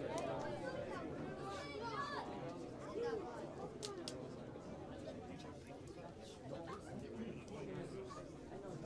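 A crowd of men chatter together in a large echoing hall.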